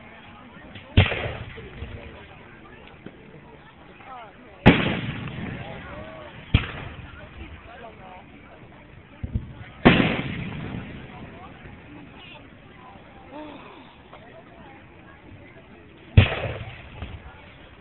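Fireworks burst with loud booms that echo away.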